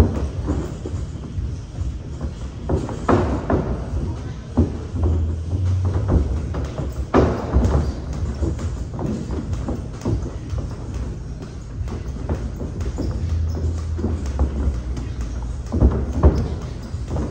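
Feet shuffle and squeak on a padded mat.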